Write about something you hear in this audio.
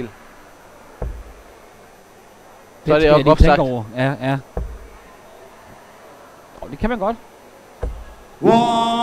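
Darts thud into a dartboard one at a time.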